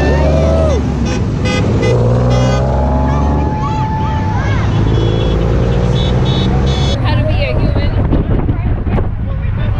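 A small group of men and women cheer and shout outdoors.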